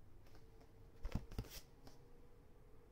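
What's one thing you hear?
Paper rustles as a book is handled close by.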